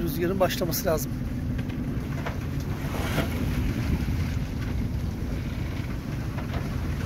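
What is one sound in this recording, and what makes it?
Waves wash against a boat's hull.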